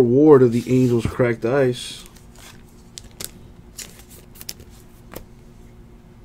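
Trading cards click and rustle as hands sort through them.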